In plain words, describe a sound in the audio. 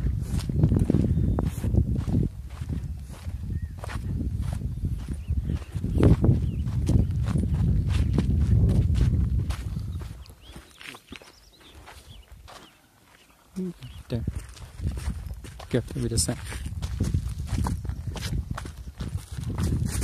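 Footsteps crunch on a gravel trail.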